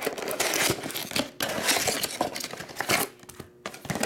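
A cardboard box rustles and scrapes as hands handle it.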